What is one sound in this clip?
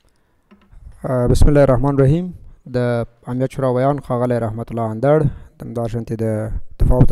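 A man speaks calmly into a microphone, heard through a loudspeaker in a large room.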